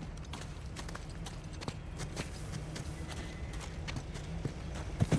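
Footsteps crunch on stone and grass.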